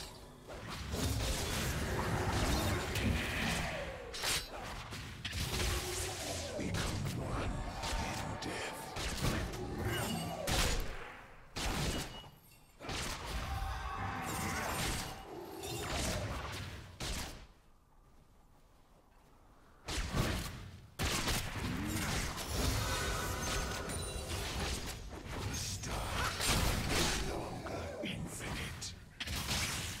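Video game spell effects and clashes sound in quick bursts.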